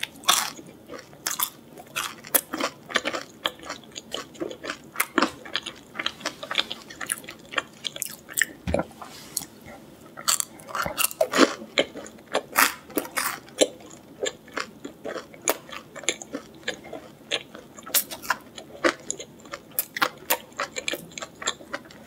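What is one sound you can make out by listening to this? A young woman crunches loudly on crispy food, close to a microphone.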